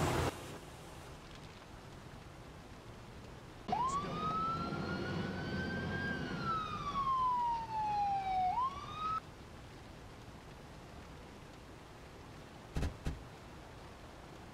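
Water sprays hard from a fire hose.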